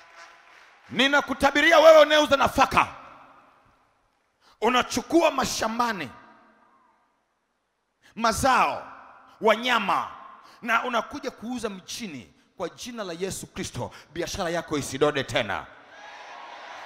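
A man preaches loudly and with animation through a microphone and loudspeakers.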